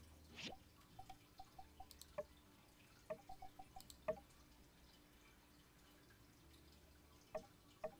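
Soft game menu blips sound in quick runs.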